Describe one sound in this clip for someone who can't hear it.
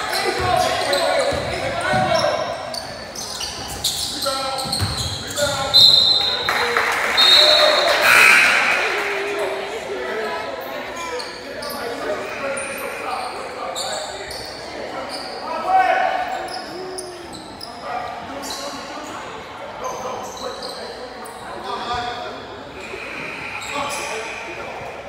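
A basketball bounces on a hardwood court in an echoing gym.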